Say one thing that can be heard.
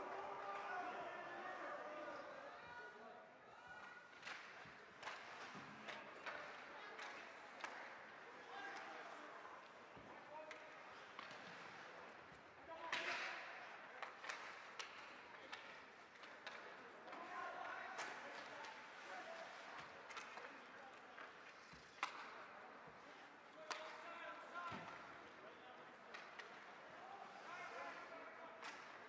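Skates scrape and hiss across ice.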